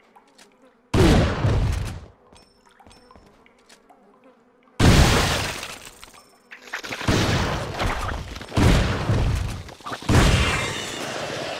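A shotgun fires loudly several times, each blast echoing briefly.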